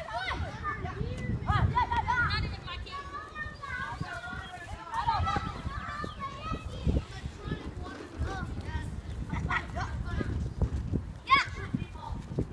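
Young boys shout and call out excitedly outdoors.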